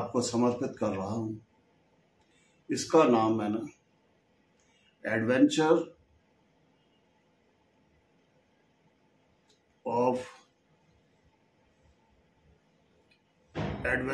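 An older man speaks calmly in short phrases with pauses, close to the microphone.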